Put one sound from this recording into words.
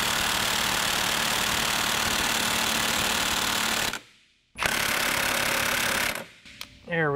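A power tool whirs loudly in short bursts.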